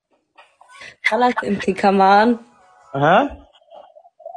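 A young woman talks with animation over an online call.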